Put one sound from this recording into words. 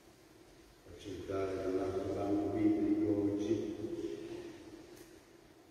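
An elderly man chants a short sung phrase into a microphone, echoing through a large hall.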